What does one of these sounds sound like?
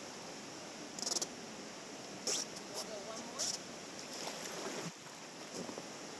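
Paddles splash in the water.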